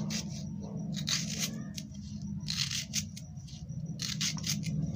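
Onion layers crackle as hands pull them apart.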